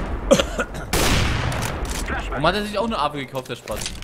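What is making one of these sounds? A sniper rifle fires a single loud, sharp shot.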